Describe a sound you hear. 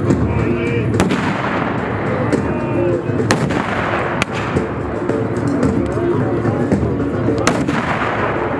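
Guns fire loud blasts.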